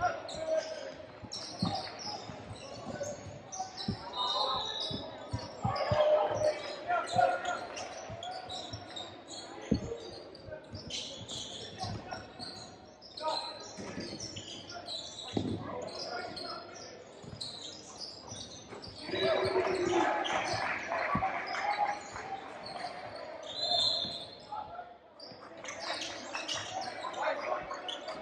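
A crowd of spectators chatters and cheers.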